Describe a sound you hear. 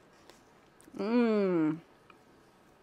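A woman hums with pleasure while eating.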